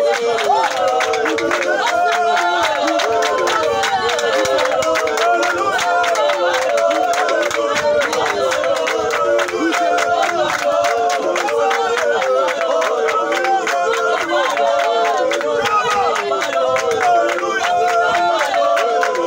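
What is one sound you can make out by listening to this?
A group of men and women pray aloud together, loud and fervent, close by.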